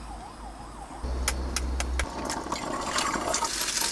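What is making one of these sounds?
An egg cracks against a pan's edge.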